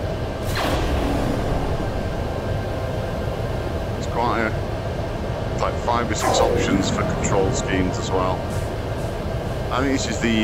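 Wind rushes steadily past a gliding craft.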